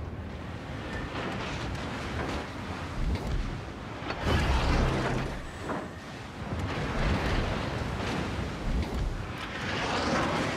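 A battleship's bow cuts through the sea with a rushing wash of water.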